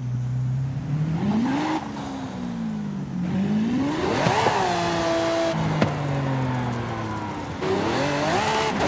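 A sports car engine revs up and down, its pitch rising and dropping with each gear change.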